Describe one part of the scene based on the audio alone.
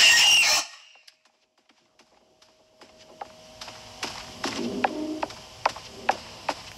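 Footsteps knock on wooden floor and stairs.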